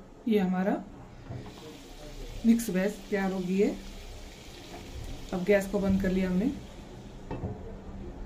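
A glass lid is set down on a non-stick pan.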